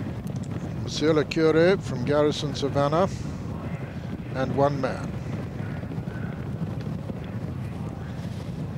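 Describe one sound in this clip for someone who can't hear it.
Horses gallop with hooves thudding on turf.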